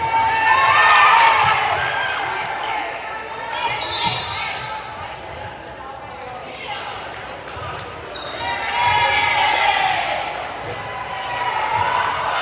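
A volleyball thumps off hands and arms.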